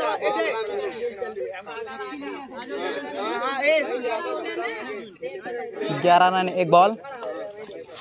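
Several young men talk and call out nearby outdoors.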